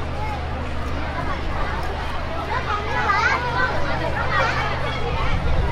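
A crowd of men, women and children chatters outdoors all around.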